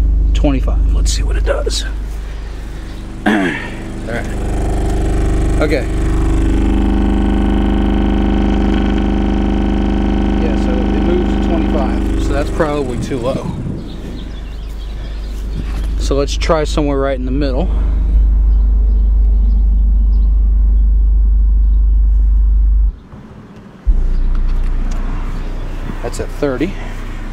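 A subwoofer booms a deep, steady bass tone that briefly cuts out near the end.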